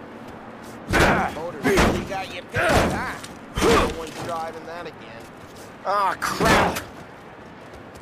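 A baseball bat smashes repeatedly against a car.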